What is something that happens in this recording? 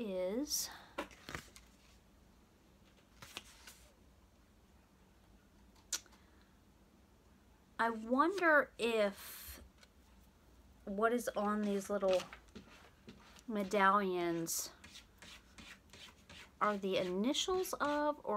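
A woman speaks close by, calmly reading aloud.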